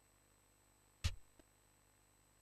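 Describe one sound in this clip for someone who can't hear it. A short game menu blip sounds once.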